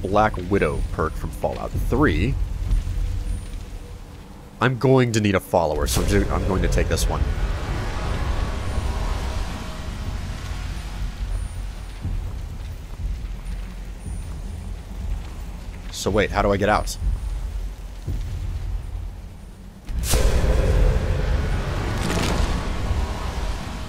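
A low magical hum drones steadily.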